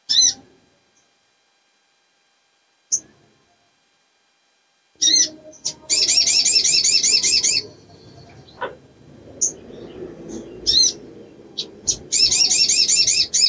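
A small bird chirps and trills in rapid bursts, sharp and high.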